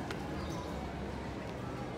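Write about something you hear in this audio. Shoes scuff and tap on a stone path.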